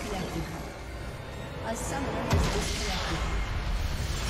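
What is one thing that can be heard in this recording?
Game spell effects crash and boom in a fight.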